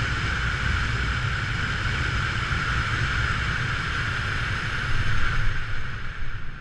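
A small drone's motors whine steadily overhead, then wind down.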